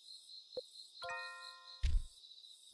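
A short electronic chime rings.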